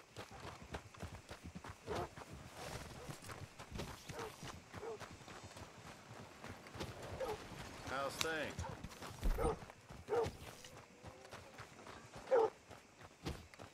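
Horses' hooves clop on dirt.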